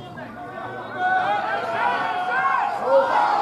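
A crowd of spectators cries out loudly.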